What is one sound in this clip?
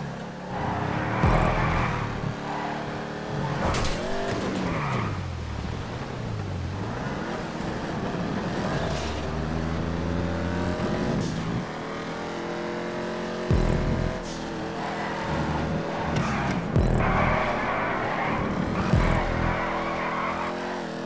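Tyres screech as a car drifts through corners.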